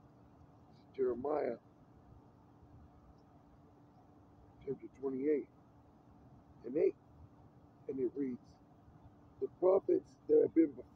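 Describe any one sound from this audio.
A man reads aloud in short, loud phrases outdoors, close by.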